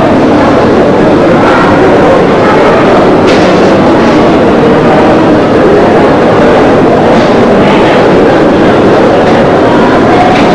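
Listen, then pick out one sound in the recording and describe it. A man talks close by amid loud, steady background noise.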